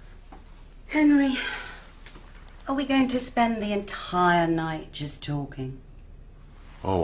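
A woman speaks playfully, close by.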